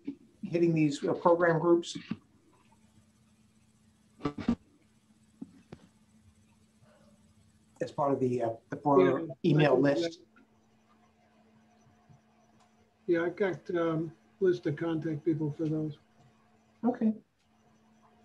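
A man speaks calmly through an online call microphone, in short phrases with pauses.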